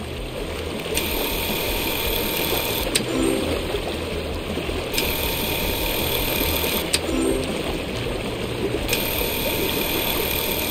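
An electric tool buzzes and crackles in short bursts.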